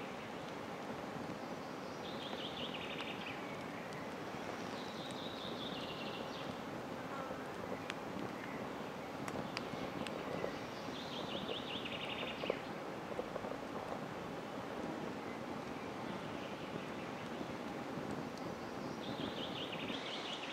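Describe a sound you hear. A campfire crackles.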